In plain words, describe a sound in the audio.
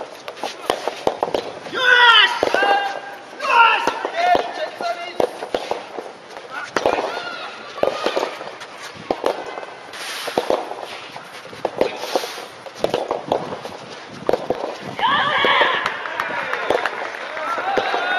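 Tennis balls are struck with rackets on outdoor courts.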